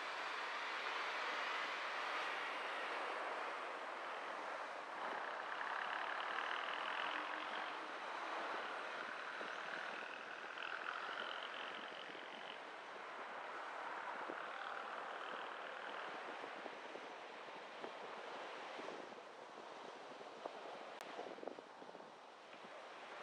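A car drives steadily along a quiet street, its tyres humming on the road.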